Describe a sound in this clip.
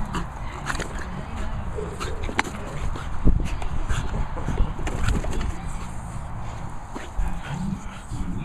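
A plastic toy rustles and crinkles as a dog tugs at it.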